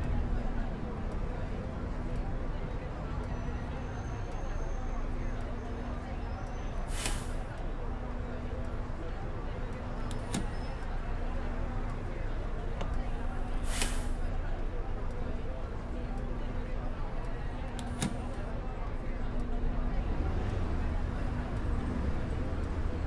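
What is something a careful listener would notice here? A turn signal ticks in an even rhythm.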